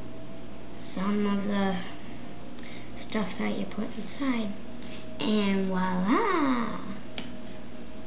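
A young girl talks brightly, close to the microphone.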